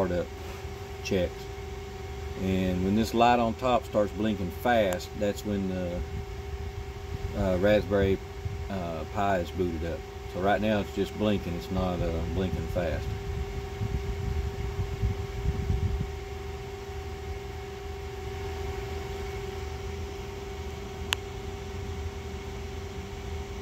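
A small cooling fan whirs with a steady hum.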